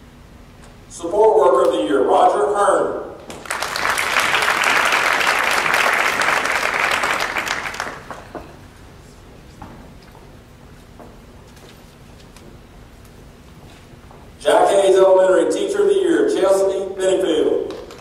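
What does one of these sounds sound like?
A man speaks over a loudspeaker in a large echoing hall.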